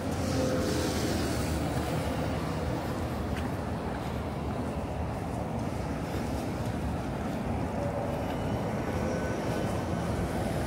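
Traffic rumbles steadily along a nearby road outdoors.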